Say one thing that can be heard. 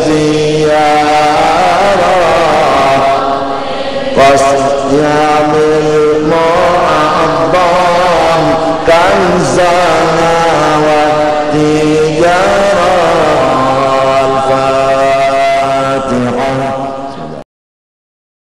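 An elderly man chants into a microphone.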